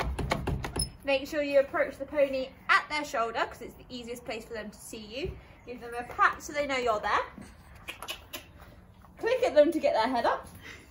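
A young woman talks calmly and cheerfully close by.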